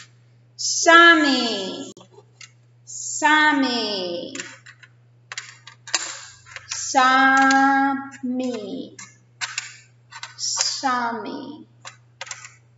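A middle-aged woman speaks slowly and clearly close by, drawing out sounds as if teaching.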